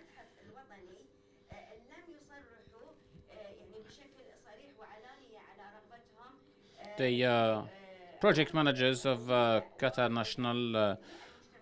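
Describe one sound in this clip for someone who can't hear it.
A young woman speaks calmly into a microphone, heard through a loudspeaker in a room.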